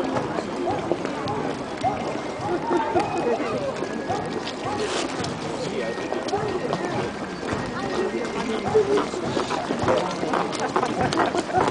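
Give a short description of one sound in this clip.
Footsteps splash on a wet road.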